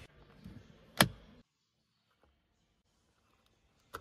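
A fuel flap pops open with a click.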